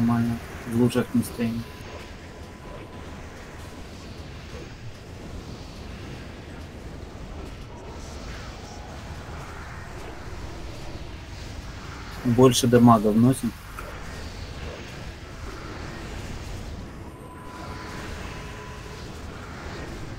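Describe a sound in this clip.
Magic spells crackle and whoosh during a battle.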